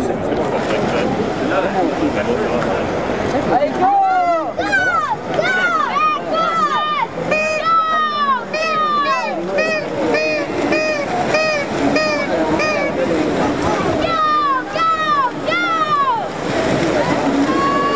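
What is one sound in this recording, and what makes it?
Swimmers splash through water.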